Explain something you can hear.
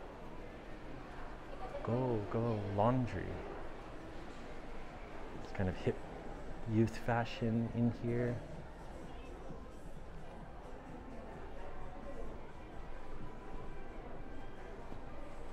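Faint footsteps and murmur from passers-by fill a quiet indoor space.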